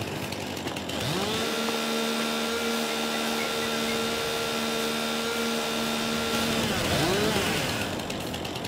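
A chainsaw revs up, runs steadily and winds down.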